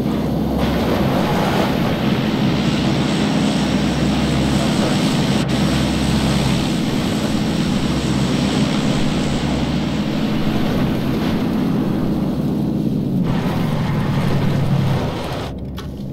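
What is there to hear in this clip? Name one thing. A car engine roars steadily as a car drives fast.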